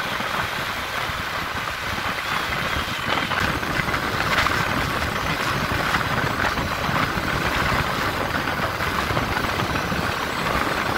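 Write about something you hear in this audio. Wind rushes and buffets loudly past a moving vehicle.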